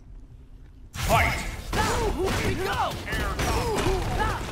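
Fighting blows and energy blasts crash and whoosh in quick succession.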